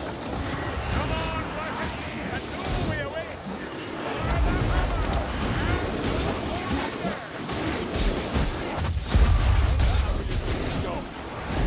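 Snarling creatures growl and shriek in a brawl.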